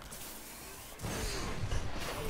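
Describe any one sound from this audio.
A crackling energy blast bursts loudly.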